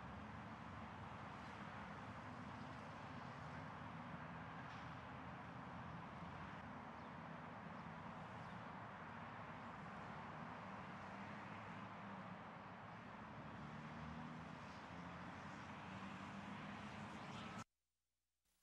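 Cars drive past on a road.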